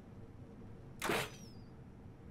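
A crossbow shoots a bolt with a sharp twang.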